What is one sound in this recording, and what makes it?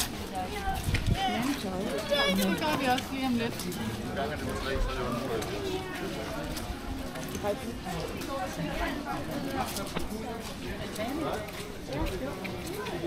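Footsteps tap on wet paving.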